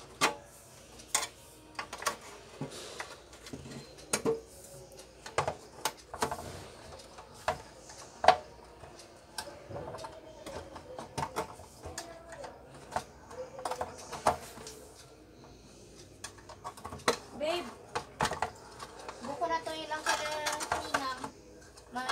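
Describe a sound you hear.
Plastic and metal parts click and knock as hands work on an appliance casing.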